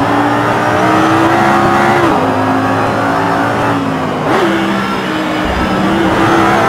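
A car engine roars at high revs, dipping in pitch at each gear change.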